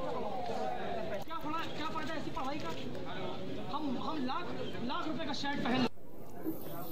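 A crowd of men talks and murmurs nearby outdoors.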